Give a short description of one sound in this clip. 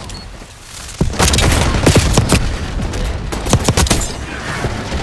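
Rapid gunfire bursts out in loud cracks.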